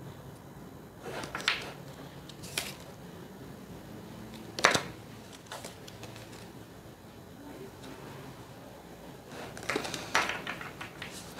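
Small plastic parts click and tap in a woman's hands.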